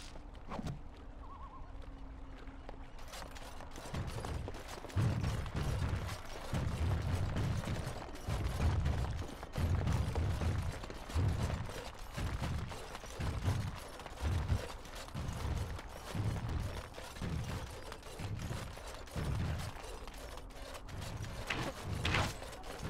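Footsteps thud on wooden boards and gravel.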